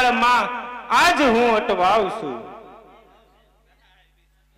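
A young woman sings loudly through a microphone and loudspeakers, her voice echoing and fading.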